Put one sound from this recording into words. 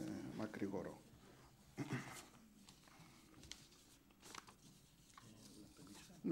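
Papers rustle close to a microphone.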